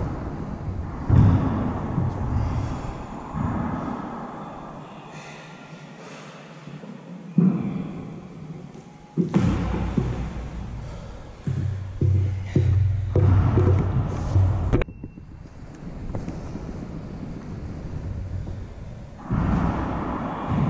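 Hands slap down on a wooden floor.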